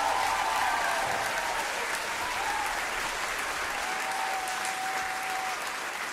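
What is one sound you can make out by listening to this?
A large crowd cheers and whistles outdoors.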